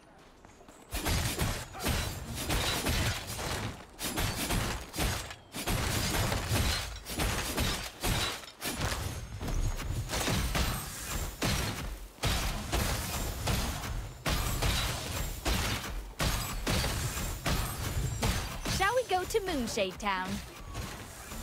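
Magic blasts burst and crackle in quick succession.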